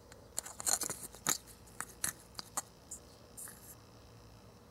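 Crumbs rustle and crackle as fingers rub them in a small plastic cup.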